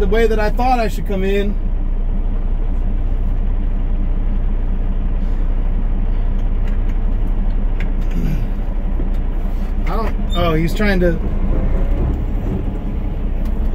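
A truck engine rumbles steadily as the truck slowly approaches.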